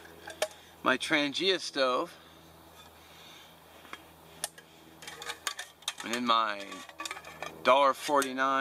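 A metal cup clinks and clatters as it is handled.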